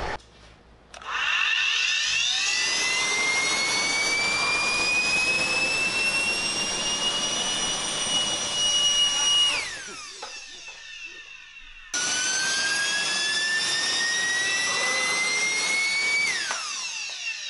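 A small motor whines loudly, its pitch slowly rising before it winds down.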